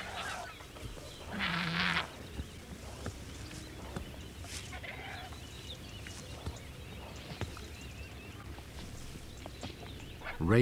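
Large birds flap their wings heavily as they scuffle on the ground.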